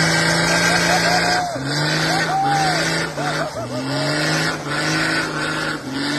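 An engine revs hard and roars, rising and dropping in pitch.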